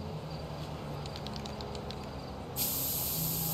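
A spray can rattles as it is shaken.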